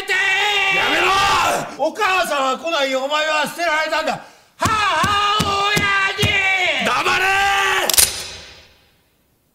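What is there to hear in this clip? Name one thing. A young man screams and shouts in anguish.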